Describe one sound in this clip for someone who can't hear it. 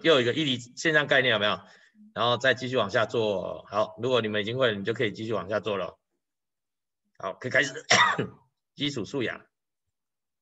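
A man speaks calmly over an online call, explaining.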